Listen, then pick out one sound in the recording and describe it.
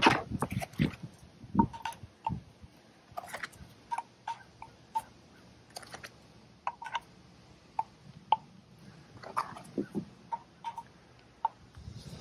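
Small glass tubes clink and tap against metal.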